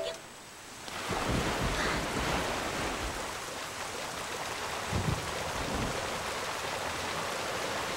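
Wind howls steadily.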